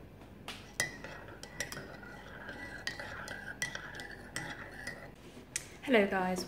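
A spoon clinks against a ceramic cup while stirring.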